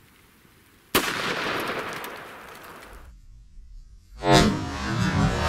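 A gunshot cracks and a bullet smacks into meat.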